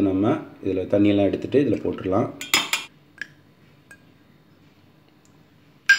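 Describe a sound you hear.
Steel bowls clink together as food is tipped from one into the other.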